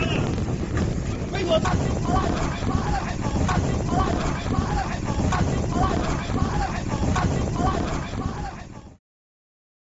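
Men shout outdoors at a distance.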